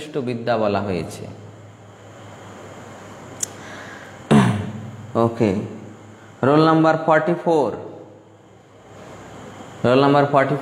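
A man speaks calmly and slowly into a nearby microphone, with pauses.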